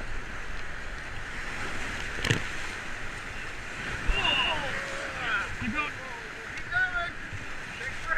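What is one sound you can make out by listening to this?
Paddles splash in the water.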